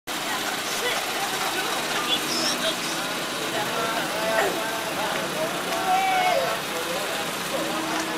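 A crowd of men and women chatters outdoors in a busy street.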